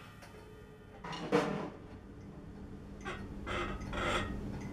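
Drums are hit in short, sharp bursts.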